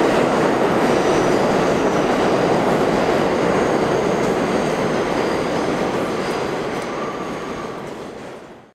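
Train wheels squeal faintly on the rails.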